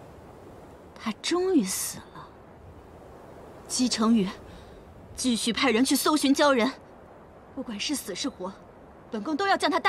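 A young woman speaks calmly and coldly, close by.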